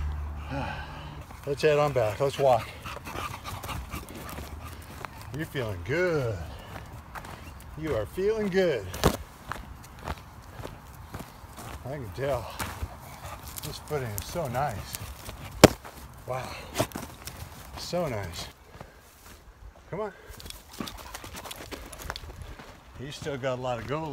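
A dog's paws patter on soft forest ground.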